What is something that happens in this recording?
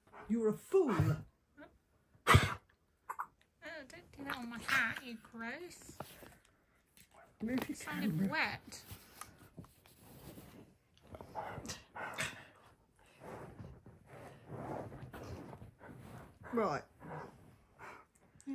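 A husky grumbles and howls in drawn-out, wavering moans close by.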